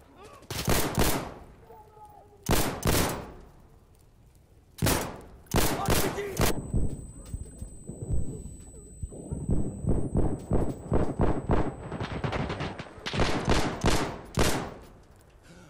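Loud gunshots fire and echo, in bursts and single shots.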